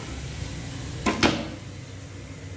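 A plastic bin lid snaps open with a clack.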